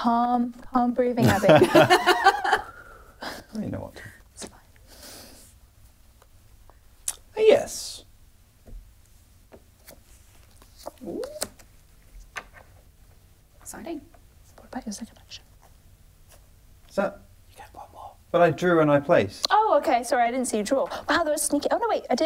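Young men and women talk and laugh together.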